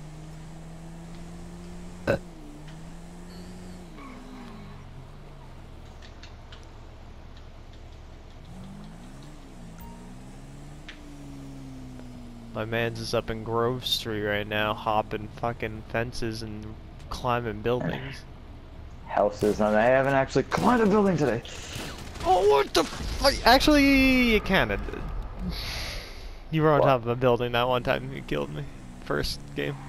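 A motorcycle engine hums and revs up and down.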